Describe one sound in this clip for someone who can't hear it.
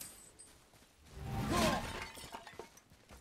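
A clay pot shatters with a crash.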